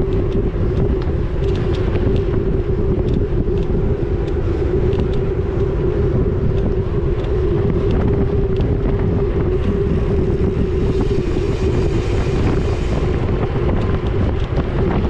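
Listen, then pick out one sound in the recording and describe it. A bicycle freewheel hums steadily.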